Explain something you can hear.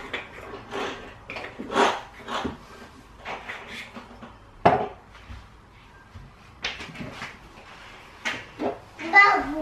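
Glass jars clink and knock against a countertop.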